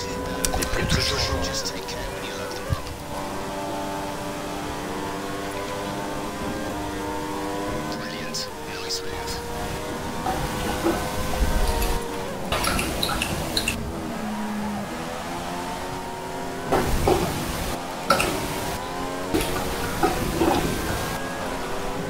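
Racing car engines whine at high revs, rising and falling in pitch as gears change.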